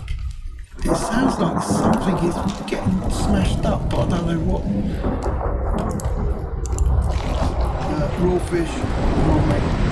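A fire crackles and pops close by.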